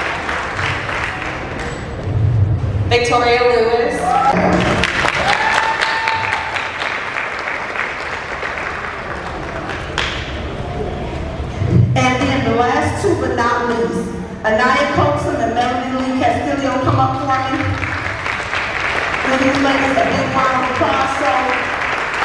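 A woman speaks warmly into a microphone, heard through loudspeakers in a large echoing hall.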